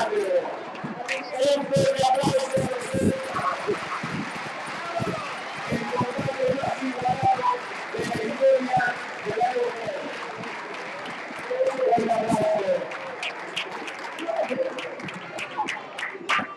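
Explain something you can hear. A crowd of children and adults chatters nearby.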